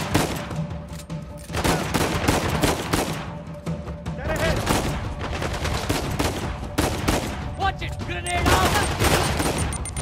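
Gunshots crack nearby.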